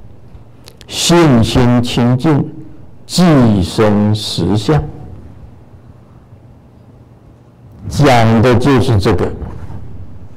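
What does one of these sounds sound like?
An elderly man reads out in a slow, chanting voice through a microphone in an echoing room.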